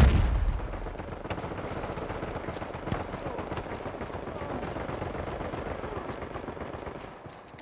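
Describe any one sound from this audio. Footsteps run quickly on stone.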